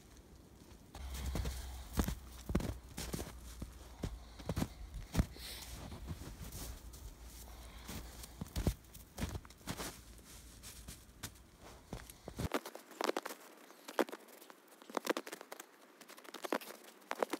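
Footsteps crunch in snow close by.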